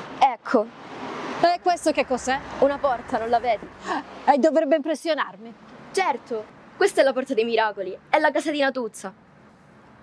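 An older woman speaks calmly up close.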